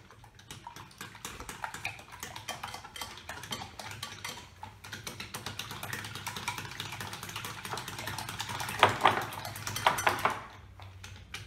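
A whisk clatters quickly against a bowl.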